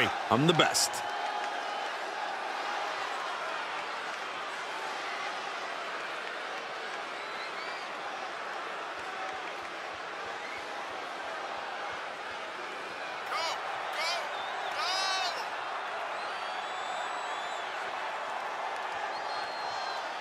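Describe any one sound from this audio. A large crowd cheers and murmurs steadily in a big echoing arena.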